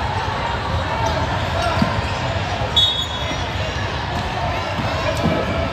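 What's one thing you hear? A crowd chatters in a large echoing gym.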